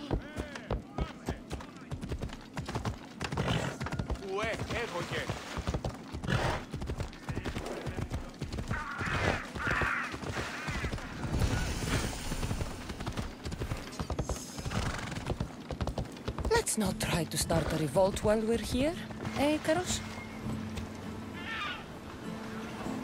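A horse's hooves clop rapidly on hard ground.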